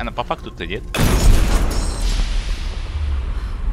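A blast booms loudly and rumbles away.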